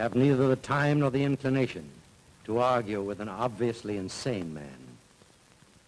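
A man speaks firmly and close by.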